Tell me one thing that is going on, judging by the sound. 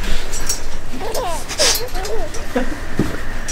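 A young man laughs loudly and excitedly.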